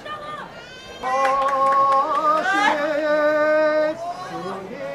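A man chants out loud in a long, drawn-out voice.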